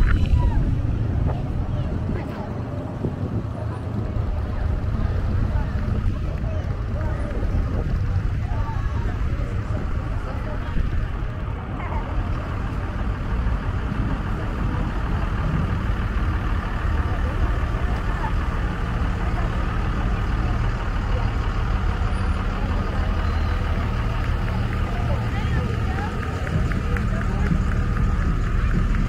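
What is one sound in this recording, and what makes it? Motorcycle engines rumble steadily as a line of bikes rides past.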